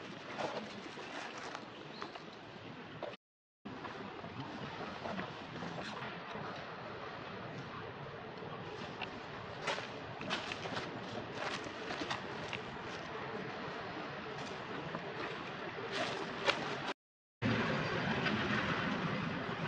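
Dry leaves rustle and crackle as monkeys shift on the ground.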